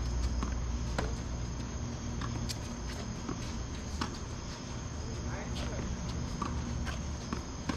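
Tennis balls are struck with rackets in a steady rally.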